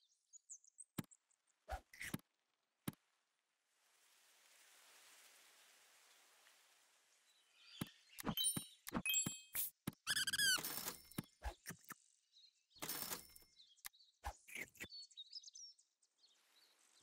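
Short game clicks and chimes sound on and off.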